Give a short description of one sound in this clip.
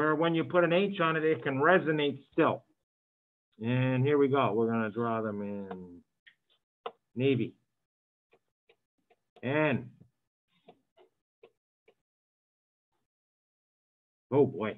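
A man lectures calmly through a microphone, in short bursts with pauses.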